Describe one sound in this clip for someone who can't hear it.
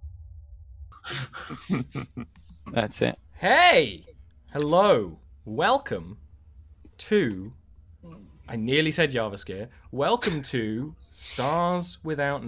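A young man speaks animatedly into a headset microphone over an online call.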